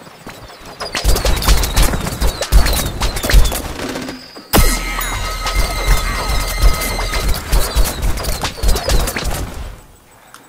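A game's blasts and zaps crackle and burst in quick bursts.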